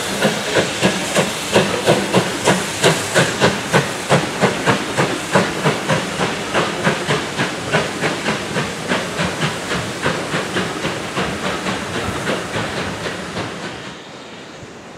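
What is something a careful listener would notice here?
A steam locomotive chuffs hard and rhythmically, slowly fading.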